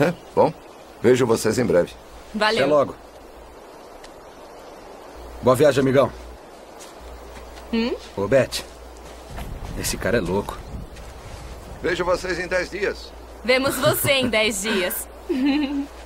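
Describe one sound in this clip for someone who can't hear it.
An older man talks calmly outdoors.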